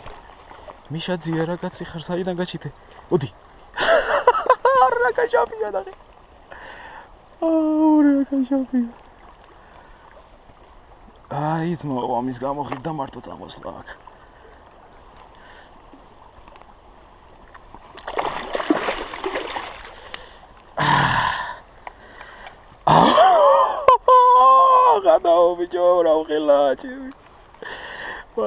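A river flows and laps gently nearby.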